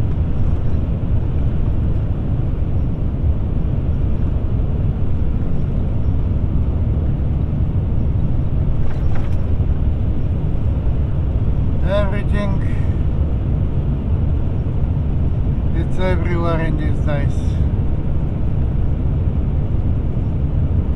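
A car's tyres roar steadily on the road.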